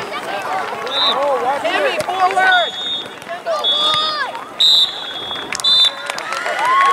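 A referee's whistle blows several short, shrill blasts.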